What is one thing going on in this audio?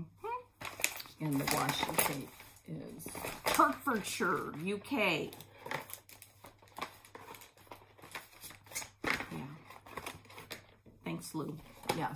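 Cardboard packaging rustles and crinkles.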